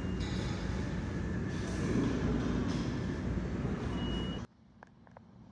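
A subway train rumbles past loudly on nearby tracks.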